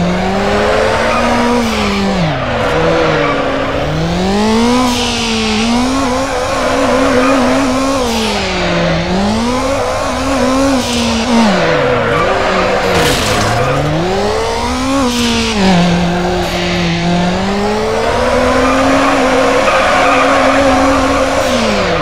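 A car engine revs high and drops again and again as it shifts gears.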